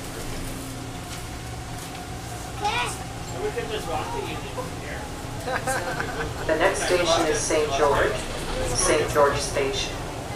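A subway train pulls away and rumbles along the track.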